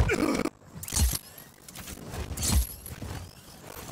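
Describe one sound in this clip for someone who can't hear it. A parachute snaps open with a sharp flap.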